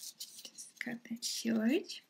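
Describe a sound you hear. Scissors snip a strand of yarn.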